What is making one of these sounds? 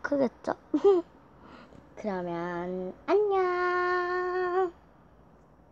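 A young child speaks in long, drawn-out sing-song tones through an online call.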